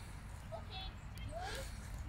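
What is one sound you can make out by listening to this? Young women laugh and call out outdoors.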